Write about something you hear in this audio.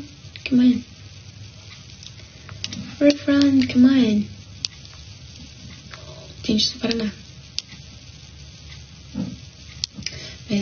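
A young woman speaks calmly and close to a microphone, in short bursts.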